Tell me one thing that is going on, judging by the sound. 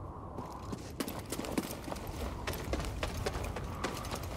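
Footsteps run quickly over rocky ground.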